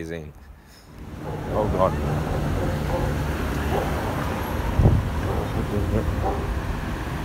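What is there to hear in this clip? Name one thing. City traffic rumbles past on a busy street outdoors.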